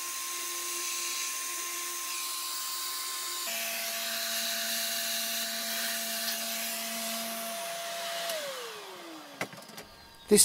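A router spindle whines steadily while cutting wood, then winds down.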